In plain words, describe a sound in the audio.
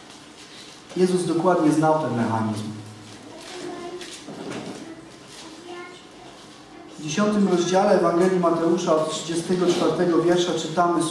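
A young man speaks calmly into a headset microphone.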